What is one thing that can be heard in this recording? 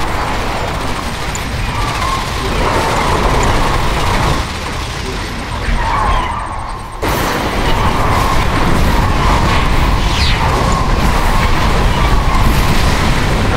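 Laser weapons zap repeatedly in a battle.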